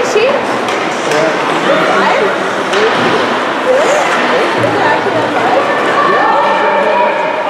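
Ice skates scrape and hiss across the ice in a large echoing arena.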